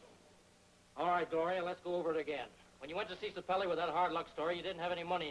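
A man speaks loudly and with strong emphasis close by.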